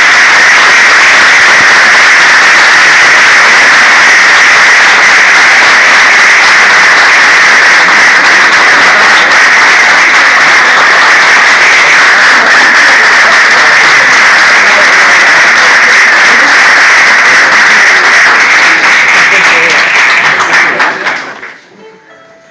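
A large audience claps loudly and steadily, then the applause quickly dies away.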